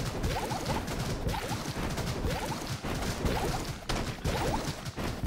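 Small explosions pop repeatedly.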